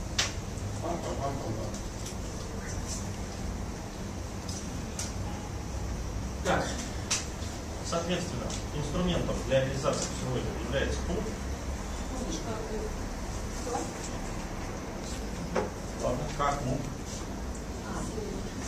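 A man speaks calmly in a room.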